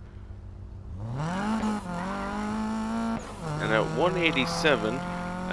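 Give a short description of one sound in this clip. A car engine revs up and roars steadily.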